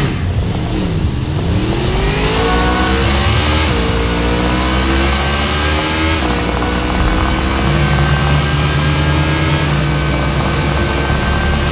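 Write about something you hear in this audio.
A motorcycle engine roars and revs up, rising in pitch as it speeds along.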